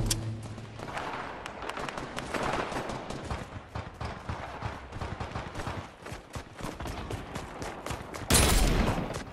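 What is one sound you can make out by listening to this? Video game footsteps patter as a character runs.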